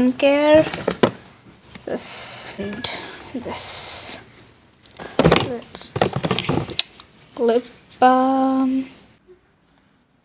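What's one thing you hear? Plastic containers rattle and rustle as a hand sorts through them.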